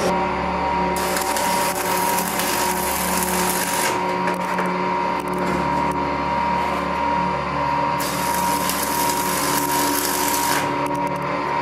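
An electric welding arc crackles and hisses loudly.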